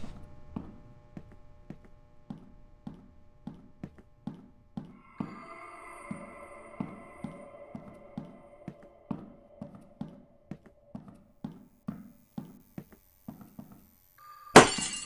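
Footsteps thud steadily on a hard floor in a quiet echoing corridor.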